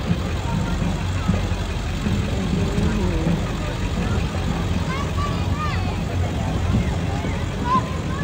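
Children chatter and shout on a passing float.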